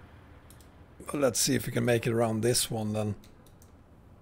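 A man talks close to a microphone, with animation.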